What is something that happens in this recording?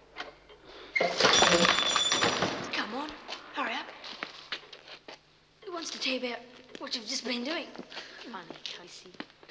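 Two men scuffle with sudden thumps.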